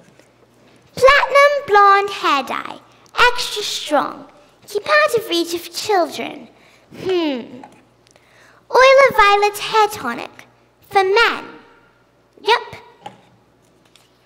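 A young girl sings loudly and expressively in a large echoing hall.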